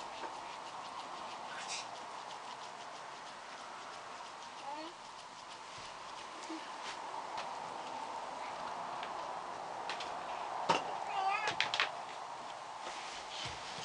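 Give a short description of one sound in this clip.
Hands softly rub and press against cloth.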